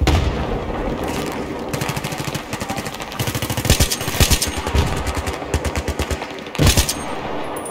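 A rifle fires in rapid bursts, each shot sharp and loud.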